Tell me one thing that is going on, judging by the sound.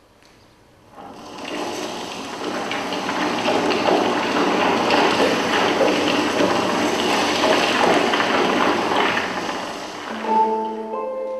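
A building collapses with a long, rumbling roar.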